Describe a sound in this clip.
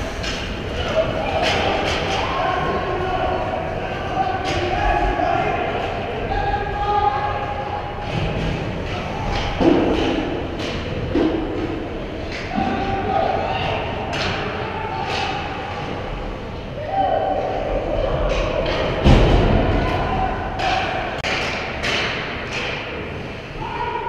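Hockey sticks and pucks clack sharply on the ice now and then.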